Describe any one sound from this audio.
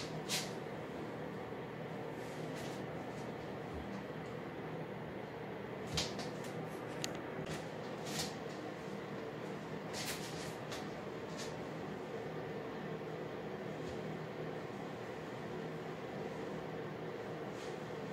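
Hands rustle and brush through hair close by.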